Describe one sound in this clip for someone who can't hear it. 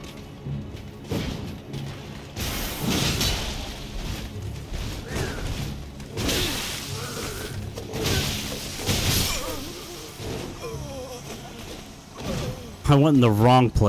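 Metal blades clang and scrape in a fight.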